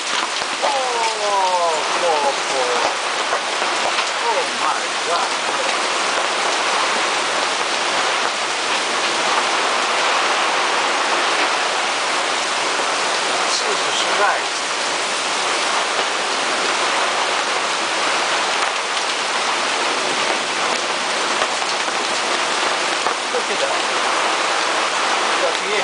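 Heavy rain pours down steadily, drumming on a canvas cover overhead.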